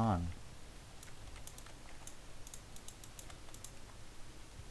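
Footsteps patter quickly on dirt.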